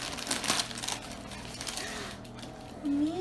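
Foil and paper rustle and crinkle as they are unwrapped.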